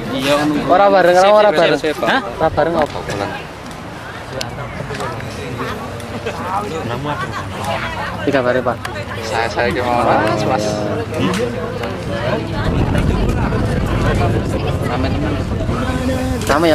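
A crowd of young people chatter outdoors.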